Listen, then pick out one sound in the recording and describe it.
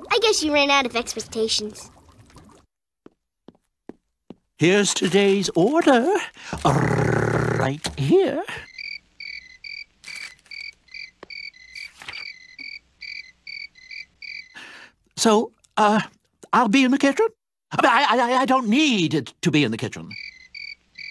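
An elderly man talks with animation in a cartoonish voice.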